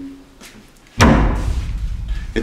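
A wooden door shuts with a thud.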